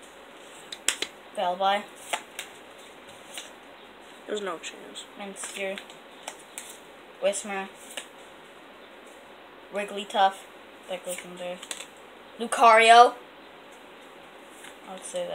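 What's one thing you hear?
Small cards click and shuffle in a boy's hands.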